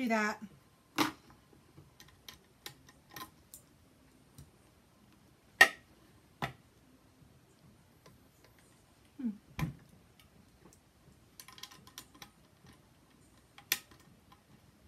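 Clicks and knocks sound as a sewing machine is handled.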